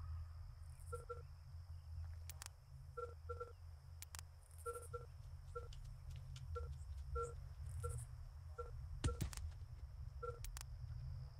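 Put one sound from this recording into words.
Soft interface clicks and blips sound as menus are opened.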